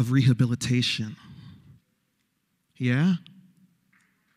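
A man speaks forcefully into a microphone over loudspeakers in a large hall.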